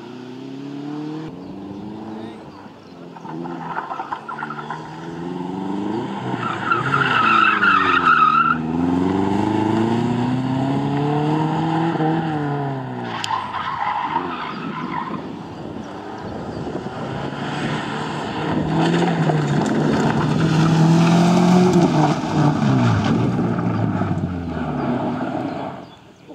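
A rally car engine revs hard, rising and falling as it accelerates and brakes.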